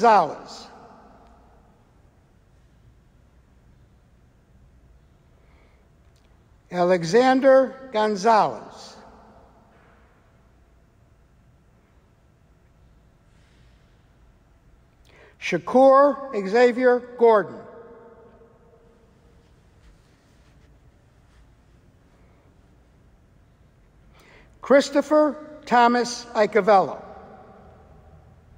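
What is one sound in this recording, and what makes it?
A middle-aged man reads out names through a microphone in a large echoing hall.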